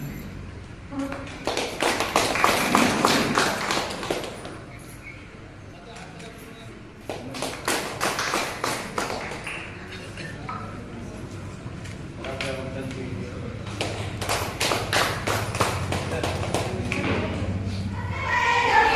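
A crowd applauds in bursts of clapping.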